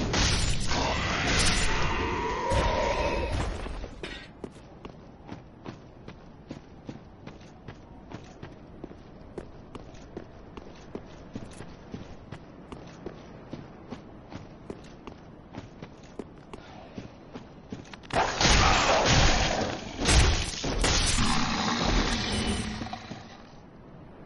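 A sword strikes with loud clashing blows.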